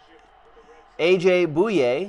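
A man speaks with animation into a close headset microphone.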